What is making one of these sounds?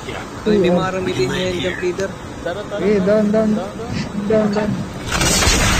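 A young man talks casually into a microphone.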